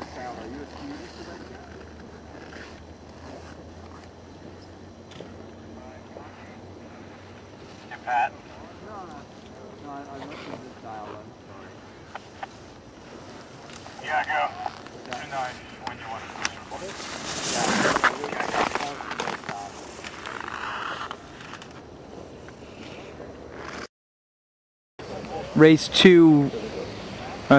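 Skis scrape and hiss across hard snow.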